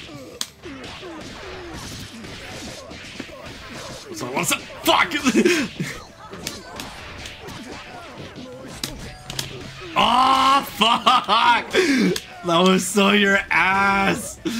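Fighting game punches and kicks land with sharp, rapid smacks.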